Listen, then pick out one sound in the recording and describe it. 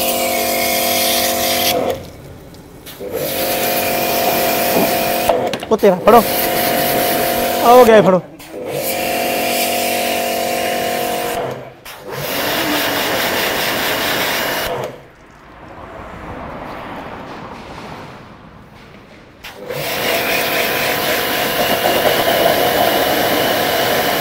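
A jet of water hisses loudly as it sprays against a car.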